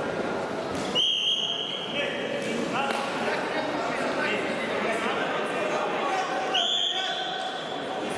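A referee blows a sharp whistle twice.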